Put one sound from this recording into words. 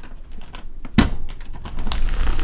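A blender lid clicks as it is twisted.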